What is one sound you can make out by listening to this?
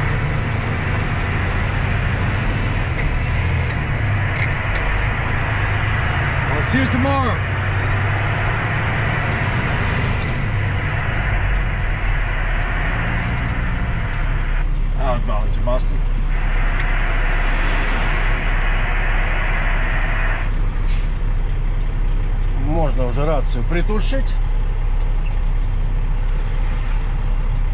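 A heavy truck engine rumbles steadily while driving.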